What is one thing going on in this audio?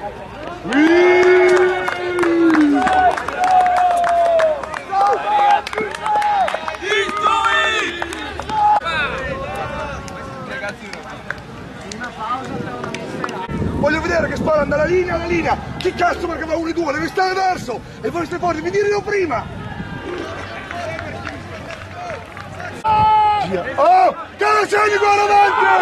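Young men call out to each other outdoors.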